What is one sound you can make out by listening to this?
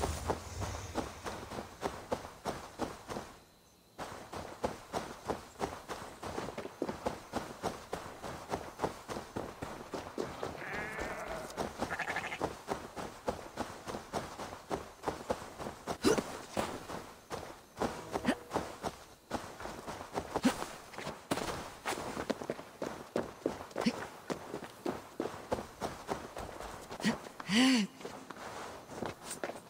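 Footsteps run quickly over grass and soft ground.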